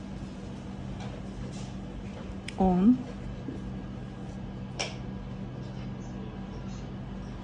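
A crochet hook softly clicks and rustles against yarn.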